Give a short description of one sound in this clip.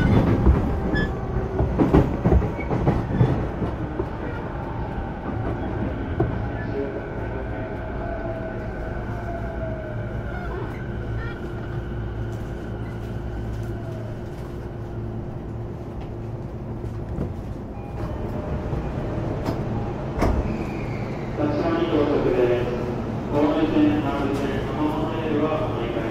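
An electric train rumbles and hums steadily.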